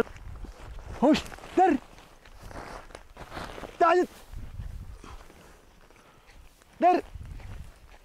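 A man gives short, sharp calls outdoors.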